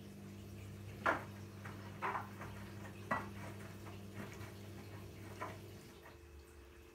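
Laundry thumps and tumbles inside a washing machine drum.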